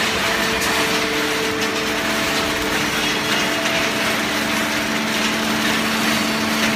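A baling machine hums and whines steadily with loud industrial noise.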